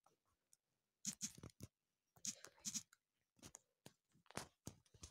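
Soft keyboard taps click as letters are typed.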